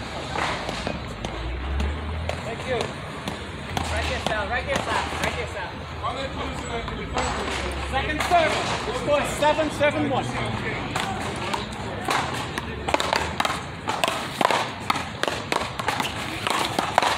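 A paddle smacks a ball with a sharp crack.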